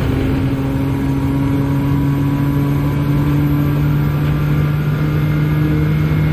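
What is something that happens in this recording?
A racing car engine drones at high revs, slowly climbing in pitch.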